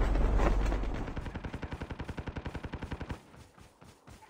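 Footsteps thud quickly and evenly across grass.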